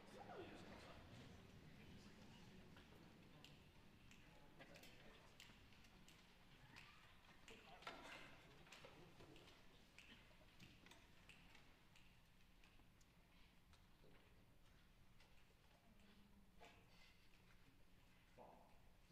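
A large concert band plays softly in an echoing hall.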